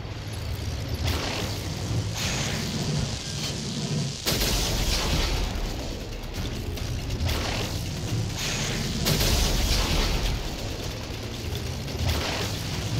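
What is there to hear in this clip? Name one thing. Guns fire in repeated bursts of blasts.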